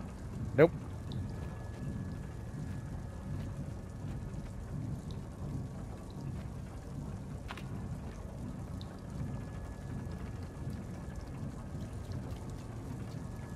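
Small footsteps patter softly on wooden floorboards.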